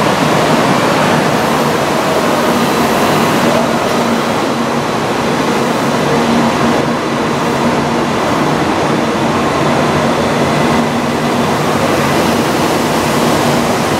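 A high-speed train pulls away and rumbles past steadily with a rushing whoosh.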